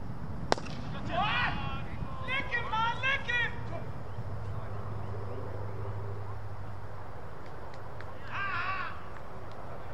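Men on a field shout and call out to each other from a distance.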